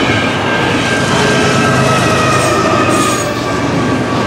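A diesel locomotive engine roars as it passes.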